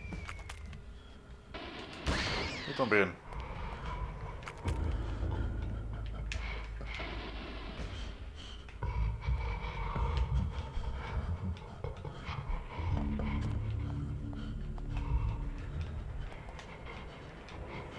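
Footsteps thud on a hard stone floor.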